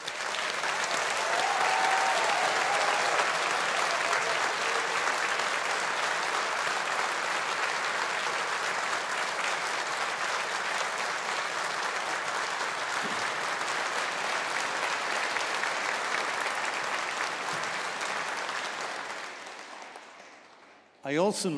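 A large audience applauds in a large echoing hall.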